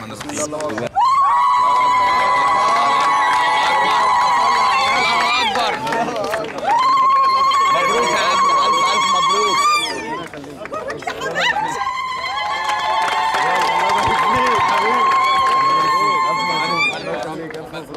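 Several women ululate loudly and joyfully.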